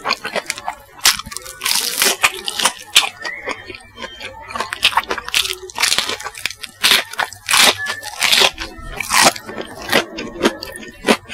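A man bites into crispy fried food close to a microphone.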